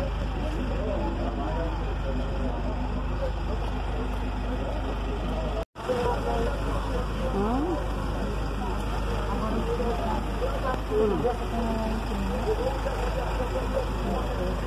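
A crowd of men and women talk and call out nearby outdoors.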